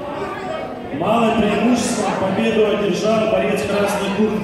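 People talk in the background of an echoing hall.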